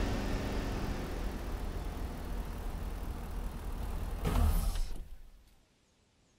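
A car engine rumbles and then dies away.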